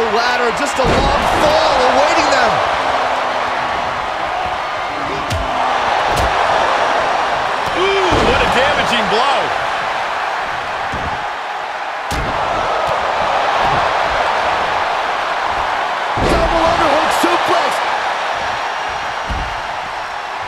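Heavy thuds of bodies slamming onto a mat sound now and then.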